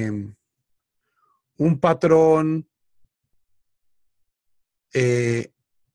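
A man chants words in a drawn-out voice through an online call.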